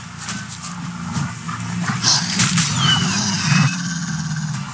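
A sword slashes and strikes a wild beast.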